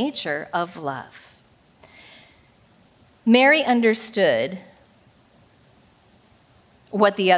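A woman speaks calmly through a microphone, pausing between phrases.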